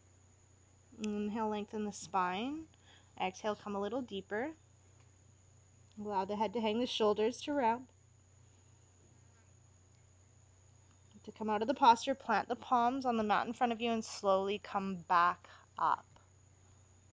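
A woman speaks calmly and close up.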